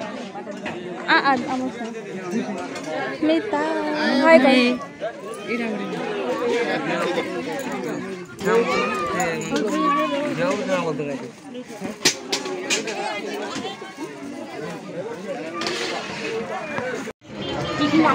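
A crowd of people chatters all around.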